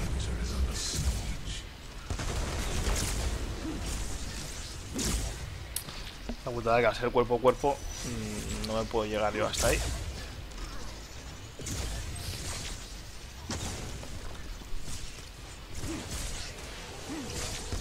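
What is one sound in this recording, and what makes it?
Blasts and explosions boom now and then.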